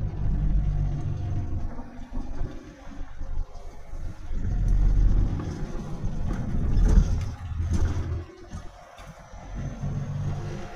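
Tyres roll and rumble on the road.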